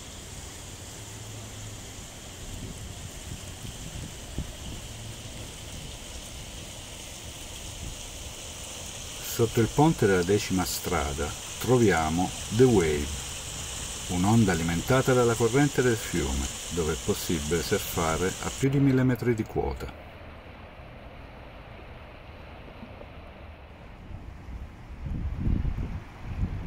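A river rushes and gurgles over rocks nearby.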